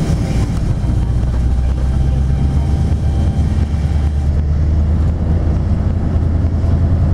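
A car engine hums steadily from inside the moving vehicle.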